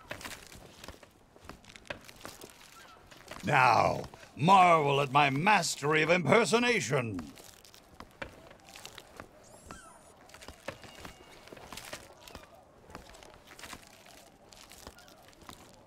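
A character's footsteps tap on stone paving.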